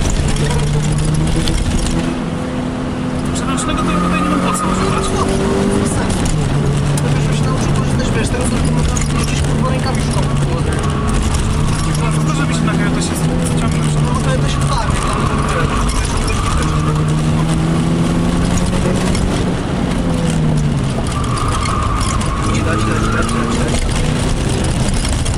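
Tyres squeal on tarmac in the corners.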